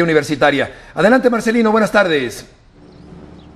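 A middle-aged man speaks clearly and calmly into a studio microphone.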